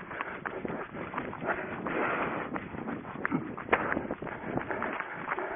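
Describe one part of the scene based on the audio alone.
Footsteps run swishing through long grass.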